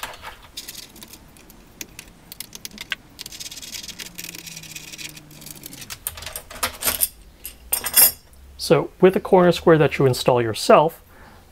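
Metal pieces click and clatter on a wooden board.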